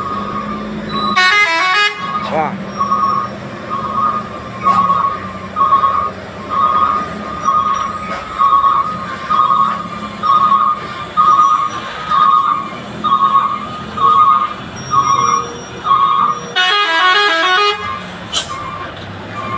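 A heavy diesel cargo truck labours slowly uphill round a hairpin bend.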